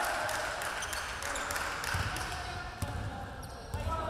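A basketball bounces with dull thuds on a wooden floor.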